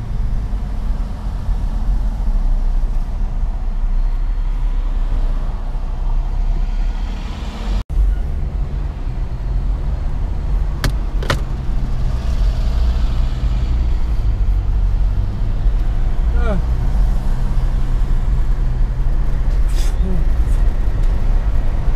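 A car engine hums steadily with road noise rumbling inside the car.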